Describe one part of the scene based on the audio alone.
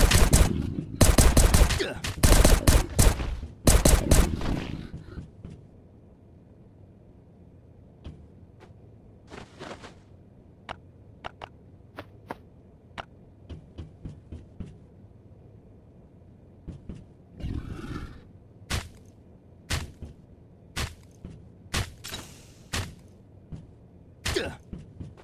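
Heavy blows thud and crash in a fight.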